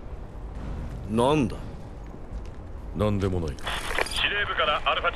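A man answers in a deep voice.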